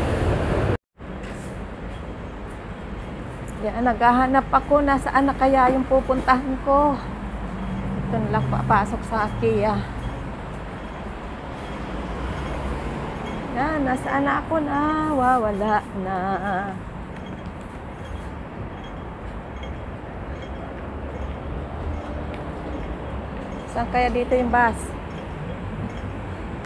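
Traffic hums steadily on a city street.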